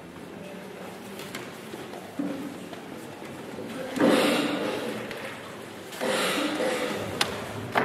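Footsteps pass across the hall floor.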